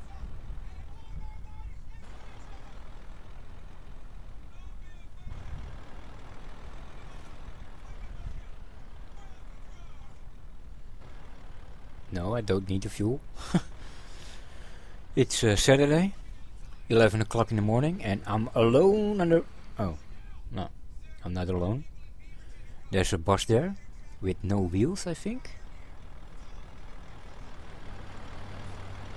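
A truck engine hums low and steadily.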